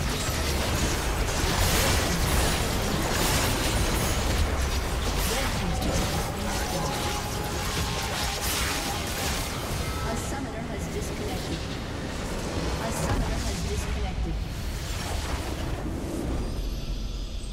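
Game spell effects crackle and blast in a busy fight.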